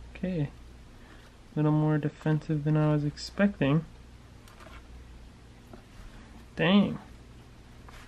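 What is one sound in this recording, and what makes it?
Metal tongs click and tap lightly close by.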